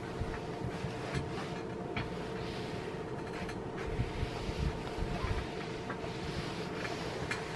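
An iron slides and rubs across fabric.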